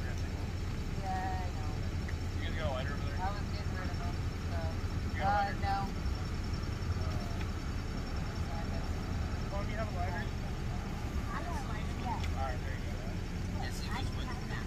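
Men talk at a distance outdoors.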